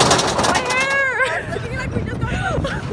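Young people scream and laugh excitedly close by.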